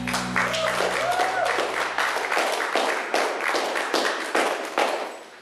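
Two women sing together through microphones.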